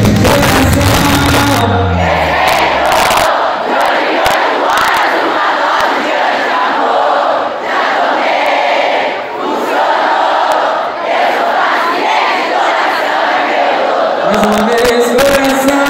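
Loud dance music with heavy bass plays through big speakers.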